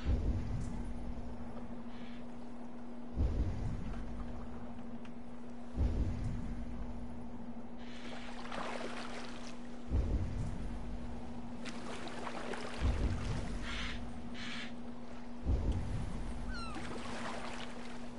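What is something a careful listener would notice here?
Water laps and splashes against a small wooden boat.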